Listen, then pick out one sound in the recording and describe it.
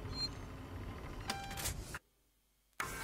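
A button clicks on a phone keypad.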